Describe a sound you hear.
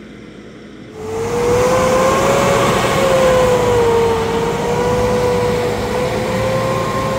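A truck engine roars and whines as it strains to pull.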